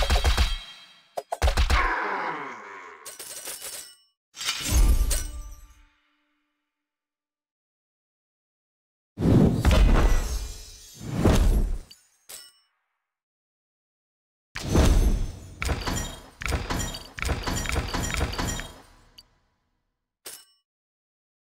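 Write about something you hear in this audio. Coins jingle and chime in short bursts.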